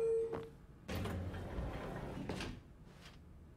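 Elevator doors slide open with a soft rumble.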